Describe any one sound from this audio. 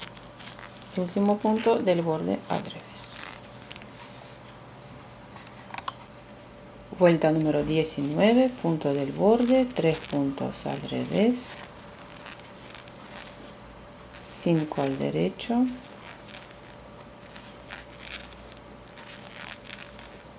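Metal knitting needles click and scrape softly against each other.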